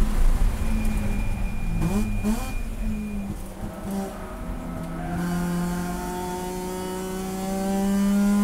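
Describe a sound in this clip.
A car engine roars close by inside the cabin, dropping in pitch and then revving up again.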